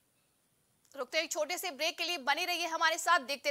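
A woman reads out calmly, close to a microphone.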